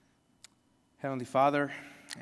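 A man speaks aloud close by.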